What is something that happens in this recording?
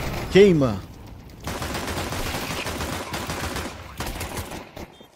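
Gunfire and blasts rattle in a video game.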